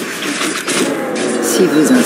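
A magic blast whooshes and roars.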